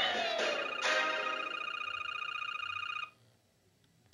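A game's score tallies up with a rapid ticking chime from a tablet speaker.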